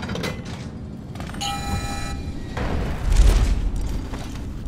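A heavy metal cell door grinds open.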